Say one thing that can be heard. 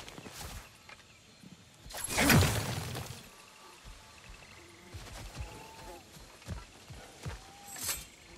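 Heavy footsteps thud slowly on soft ground.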